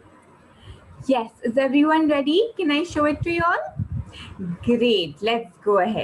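A young woman speaks with animation into a microphone, heard as if over an online call.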